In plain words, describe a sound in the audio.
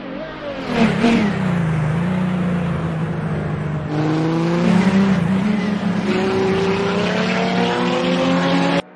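A racing car engine revs up and down through gear changes as the car speeds away.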